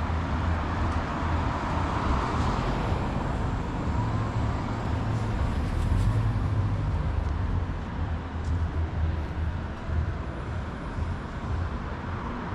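A car drives slowly past on the street.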